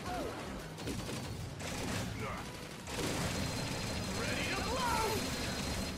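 Game explosions boom and crackle.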